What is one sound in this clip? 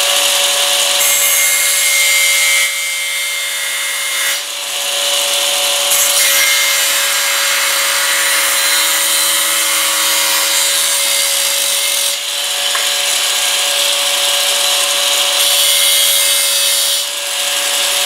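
An angle grinder cuts into metal with a harsh screech.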